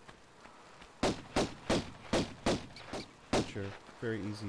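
Footsteps tap quickly on a stone floor.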